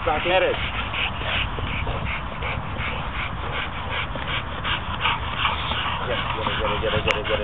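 A dog growls as it tugs.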